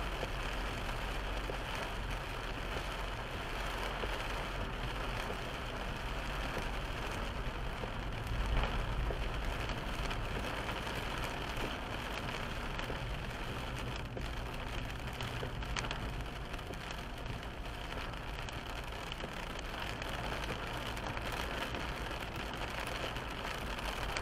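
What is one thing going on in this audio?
Heavy rain patters steadily on a car windscreen.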